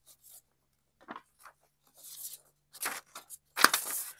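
Paper sheets rustle and crinkle.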